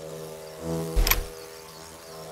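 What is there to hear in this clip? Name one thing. A bullet strikes a deer with a heavy thud.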